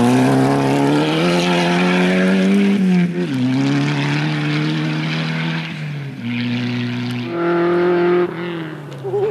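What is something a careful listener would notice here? A rally car engine revs hard and drops between gear changes.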